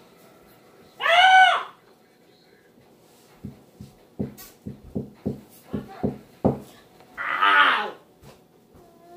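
A young girl squeals loudly close by.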